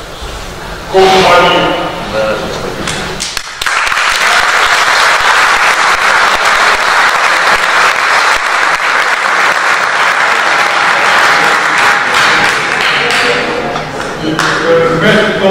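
An elderly man speaks slowly into a microphone, heard through loudspeakers in a large echoing hall.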